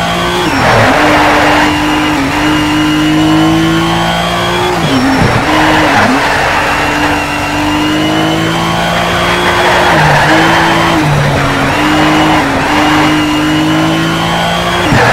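A racing car engine roars loudly, revving up and dropping in pitch as it shifts gears.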